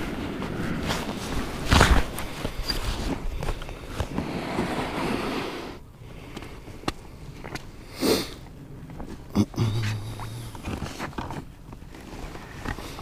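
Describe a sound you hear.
Wind blows against the microphone outdoors.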